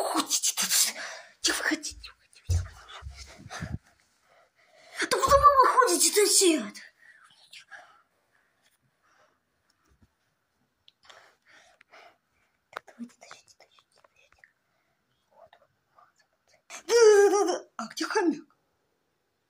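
A boy talks excitedly close to the microphone.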